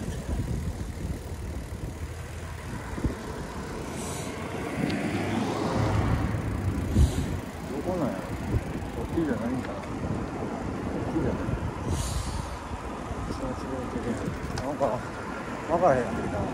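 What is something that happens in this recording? Wind rumbles against the microphone while riding outdoors.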